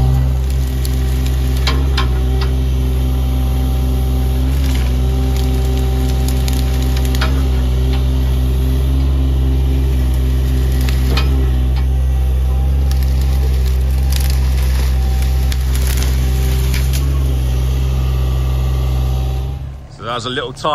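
An excavator's diesel engine hums steadily close by.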